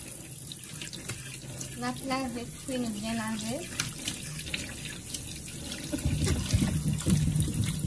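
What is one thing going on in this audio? Water runs from a tap and splashes over vegetables.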